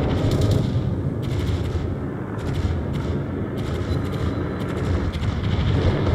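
Water rushes and splashes against a ship's hull.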